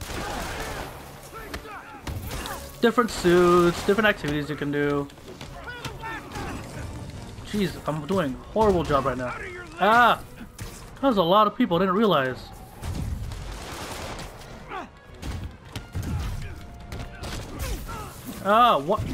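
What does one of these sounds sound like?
Punches and kicks thud in a brawl.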